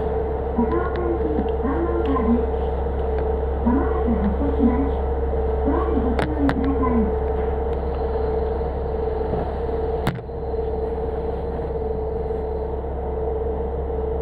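A diesel railcar's engine idles with a steady hum.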